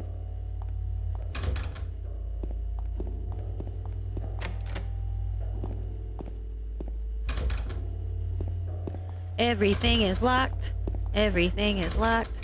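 Footsteps tap slowly on a hard tiled floor.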